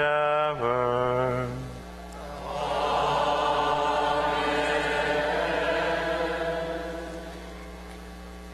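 A choir sings a long held chord that rings out and fades in a large echoing hall.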